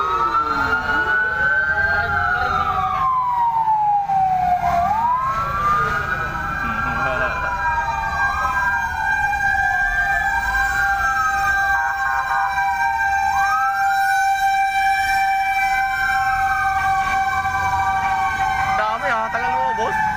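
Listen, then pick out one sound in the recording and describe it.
Several sirens wail nearby, rising and falling over and over.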